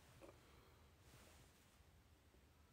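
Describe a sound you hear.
A young woman breathes out softly close by.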